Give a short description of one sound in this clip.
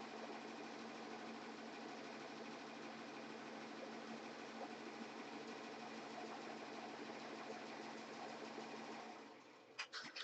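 An embroidery machine hums and stitches with a steady rapid whirr.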